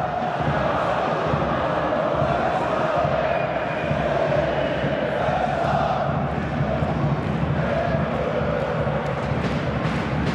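A crowd of spectators chants and roars steadily in a large stadium.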